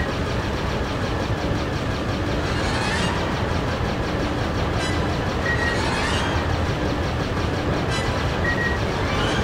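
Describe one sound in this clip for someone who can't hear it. Laser cannons fire in rapid bursts.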